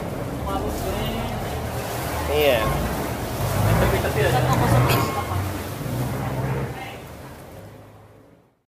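People chatter nearby as they walk outdoors.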